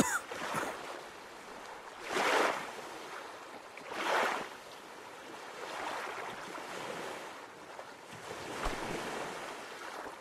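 Water splashes with slow swimming strokes.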